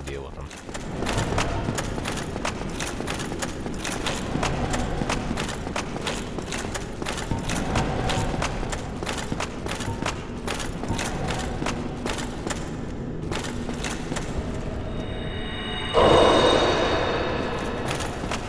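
Heavy armoured footsteps clank steadily on a stone floor.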